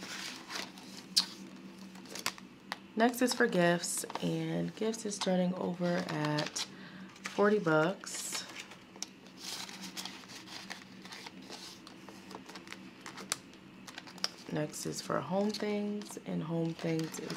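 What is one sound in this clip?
A plastic zipper pouch crinkles and rustles as it is handled.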